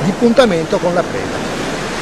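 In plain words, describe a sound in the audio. An adult man speaks with animation close by, outdoors.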